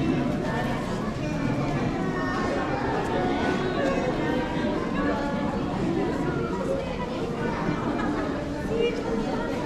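A large crowd of men and women chatters all around in a big echoing hall.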